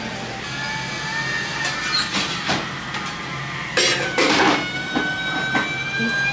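Metal irons clank and clatter as they are opened and closed.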